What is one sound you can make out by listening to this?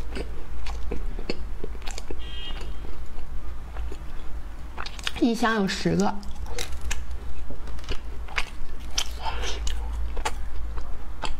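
A young woman chews a crunchy cookie close to the microphone.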